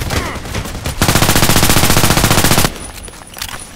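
A rifle fires a rapid, loud burst close by.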